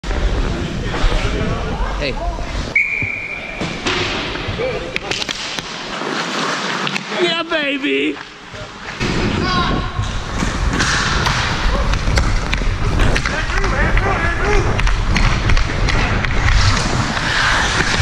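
Skate blades scrape and carve across ice.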